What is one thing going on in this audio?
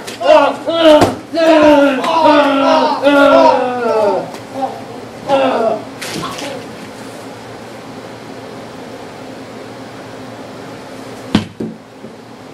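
A sharp thump sounds.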